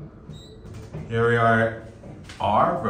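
An elevator chime rings on arrival.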